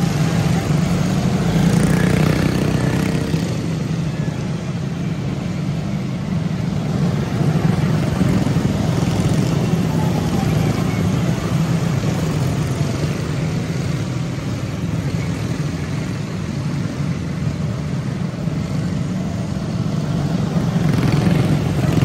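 Small kart engines buzz loudly as a pack of racing karts speeds past, rising and falling as they come and go.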